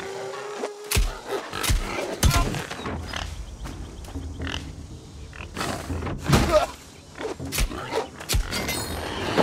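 Sword blows strike an animal with sharp thuds.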